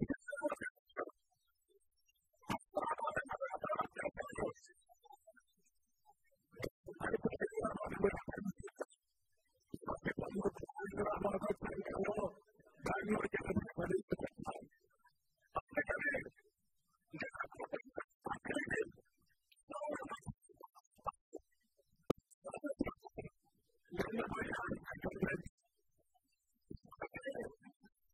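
An elderly man speaks with emphasis into a headset microphone over loudspeakers, in bursts with pauses.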